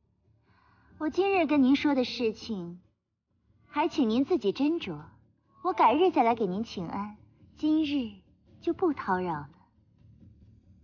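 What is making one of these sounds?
A young woman speaks calmly and politely, close by.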